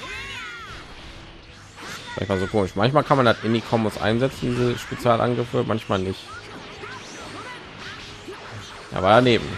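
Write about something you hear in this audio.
Energy blasts burst and explode with loud booms.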